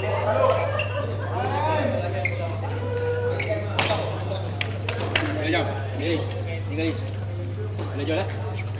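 Several men talk and call out in a large echoing hall.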